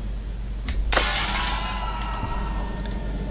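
A hammer smashes through something with a loud crash and clatter.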